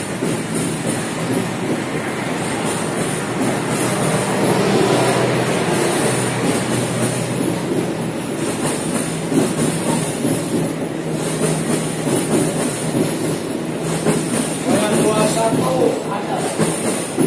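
A train rumbles steadily past at close range.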